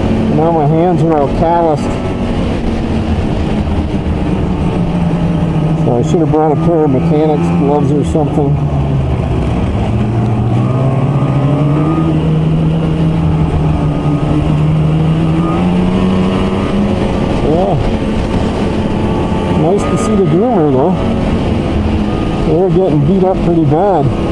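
A snowmobile engine drones steadily close by, its pitch rising and falling as it speeds up and slows down.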